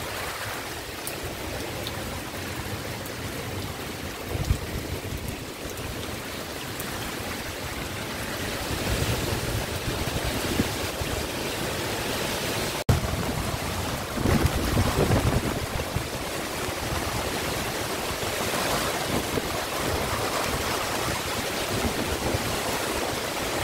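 Strong wind roars outdoors, with gusts rising and falling.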